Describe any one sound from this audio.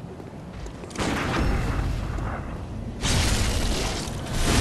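A huge beast lands heavy blows in a fight.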